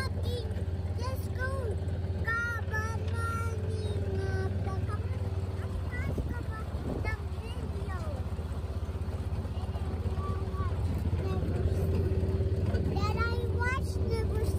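A small child babbles in a high voice close by.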